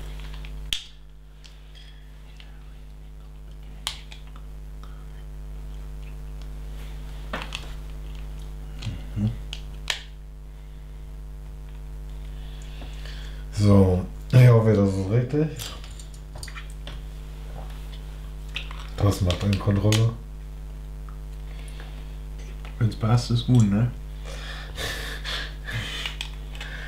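Small plastic bricks click and snap together.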